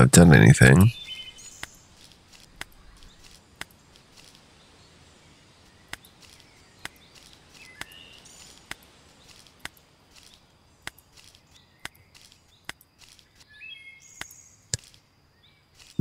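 Footsteps tap softly on soft ground.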